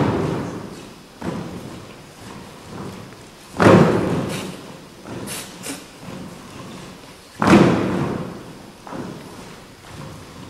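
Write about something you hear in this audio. Dancers' feet step and shuffle on a stage floor.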